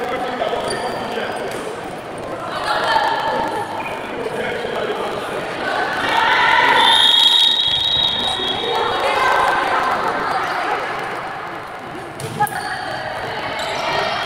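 Young women shout to each other in a large echoing hall.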